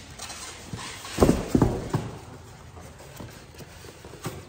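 A foam lid squeaks and scrapes as it is lifted off.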